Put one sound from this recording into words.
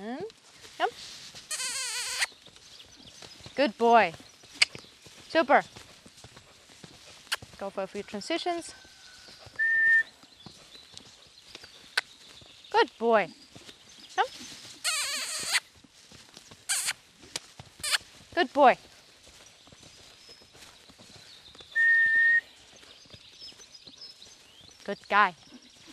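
A young woman calls out commands to a horse.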